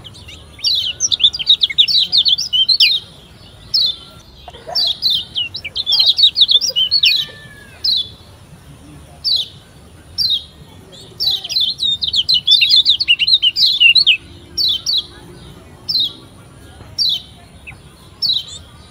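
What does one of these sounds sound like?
A small songbird chirps and trills in quick, high bursts.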